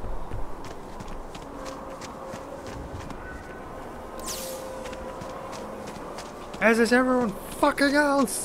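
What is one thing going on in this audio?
Footsteps crunch on gravel at a steady pace.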